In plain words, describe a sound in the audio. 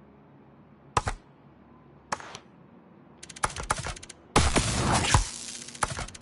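Short game menu clicks and swooshes sound as selections change.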